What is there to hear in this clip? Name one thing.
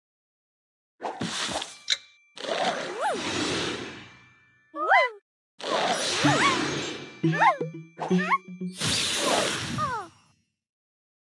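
Game tiles clear with bright chiming, whooshing effects.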